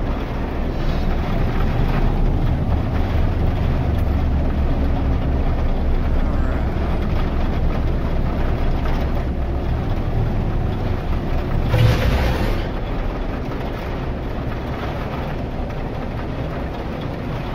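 A spaceship engine rumbles steadily in flight.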